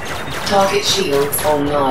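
Laser cannons fire in quick bursts.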